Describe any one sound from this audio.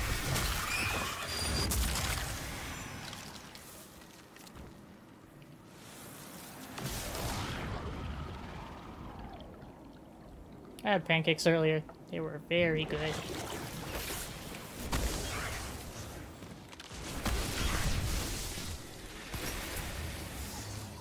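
Game gunfire and energy blasts crackle and boom.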